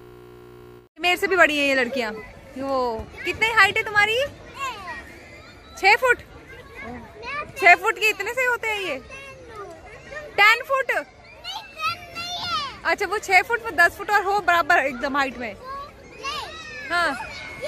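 Young girls talk and giggle excitedly close by.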